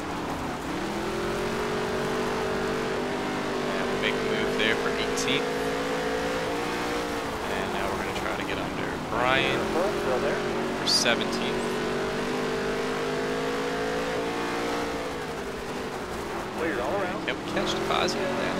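A race car engine roars, rising and falling in pitch as it accelerates and slows for corners.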